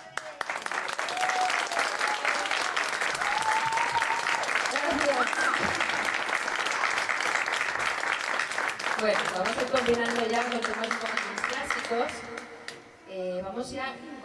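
A woman sings into a microphone over a loudspeaker.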